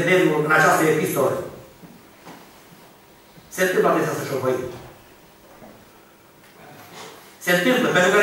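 An elderly man speaks slowly and with emphasis into a microphone, heard through a loudspeaker in a reverberant hall.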